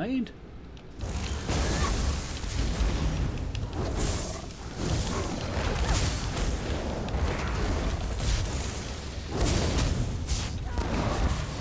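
Spell blasts and weapon impacts crash and crackle in a fight.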